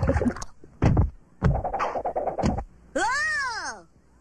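Loud thumps and crashes of a scuffle ring out.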